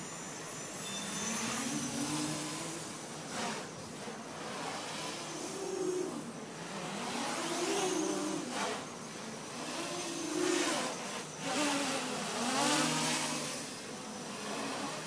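A small drone's motors whine loudly, revving up and down as it flies.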